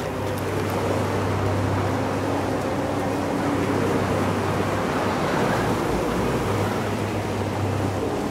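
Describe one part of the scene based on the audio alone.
A strong wind howls steadily through an icy gorge.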